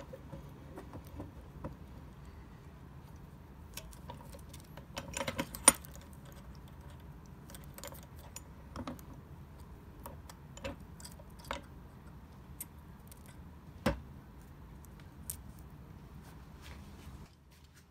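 Small metal pins click and tap against a steel vise.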